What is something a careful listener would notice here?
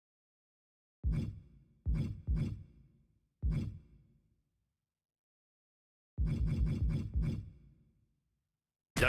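Menu tick sounds chime as a selection steps through a list.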